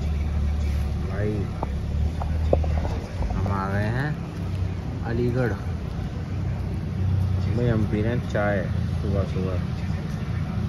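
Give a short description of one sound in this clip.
A young man talks close to a phone microphone.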